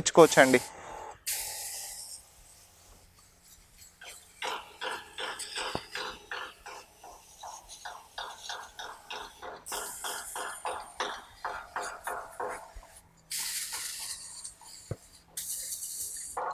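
A garden sprayer hisses as it sprays water in short bursts.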